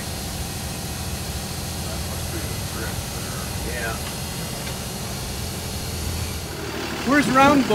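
A truck engine rumbles low and steady while driving.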